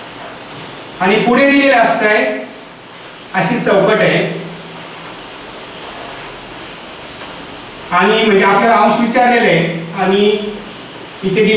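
A man speaks calmly, close to a microphone, in short bursts.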